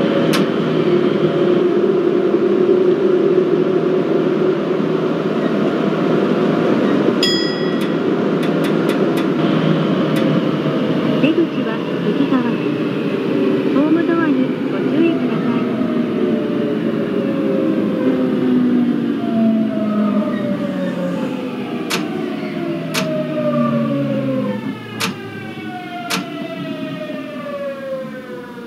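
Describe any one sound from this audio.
Train wheels rumble steadily on the rails.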